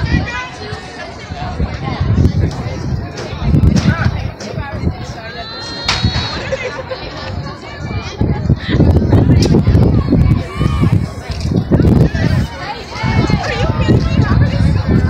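A crowd of spectators chatters and calls out nearby outdoors.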